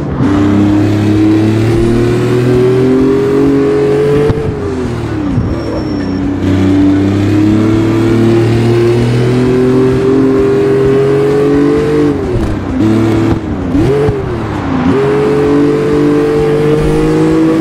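A car engine revs hard, rising in pitch and dropping sharply at each gear change.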